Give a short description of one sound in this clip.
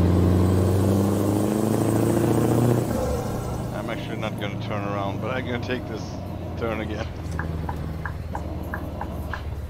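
A truck engine rumbles steadily, louder at first and then easing off.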